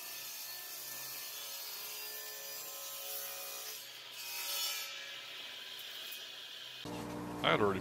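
A table saw whirs steadily as it cuts through a wooden board.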